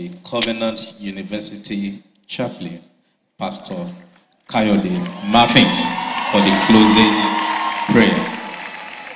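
A man speaks formally into a microphone, heard through loudspeakers in a large echoing hall.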